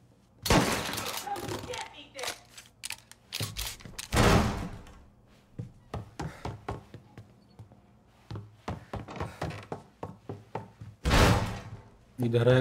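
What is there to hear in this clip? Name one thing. A door bursts open with a loud crash.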